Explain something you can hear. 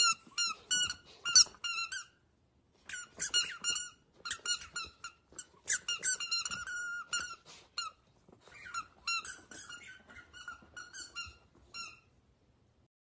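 A squeaky rubber toy squeaks again and again.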